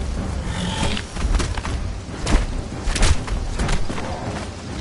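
Sword blows strike a large reptile with sharp hits.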